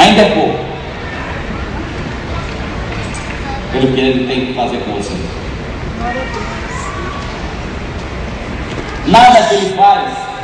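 A man speaks loudly through a microphone over loudspeakers, echoing outdoors.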